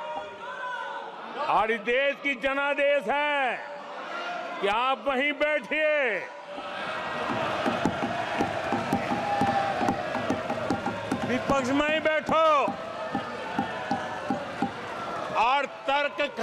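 An elderly man speaks forcefully into a microphone.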